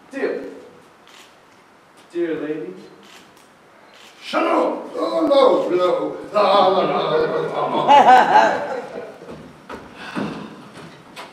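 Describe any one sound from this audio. Men speak loudly and with animation, heard from a distance in a large hall.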